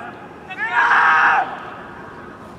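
A man shouts loudly nearby outdoors.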